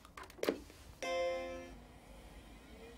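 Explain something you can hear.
A computer plays a startup chime.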